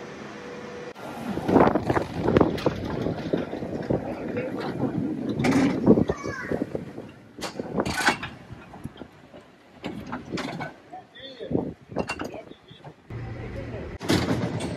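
A cable car rumbles and clatters past outdoors.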